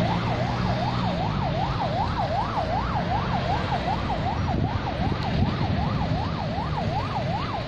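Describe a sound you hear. Car engines hum as cars drive slowly around a roundabout.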